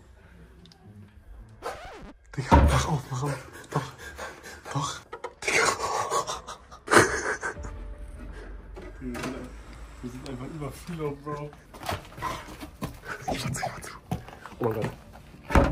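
A young man talks and laughs excitedly close by.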